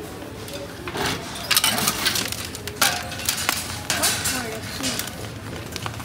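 Plastic shopping baskets clatter and knock together.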